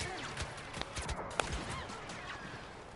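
Blaster shots fire in rapid bursts with sharp cracks and explosions.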